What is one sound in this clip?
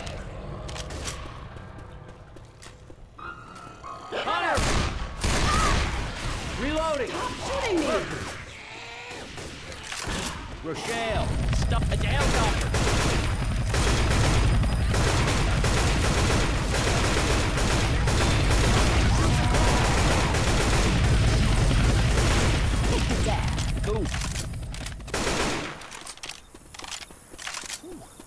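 Guns fire in quick, loud bursts.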